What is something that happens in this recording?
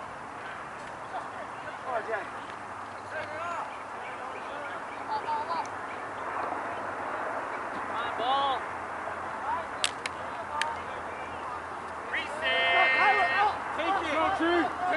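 Young men shout across an open field outdoors.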